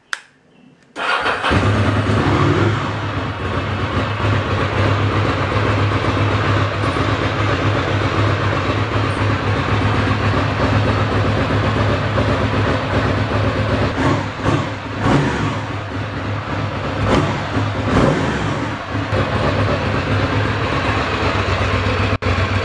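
A motorcycle engine starts up and idles loudly with a deep rumble.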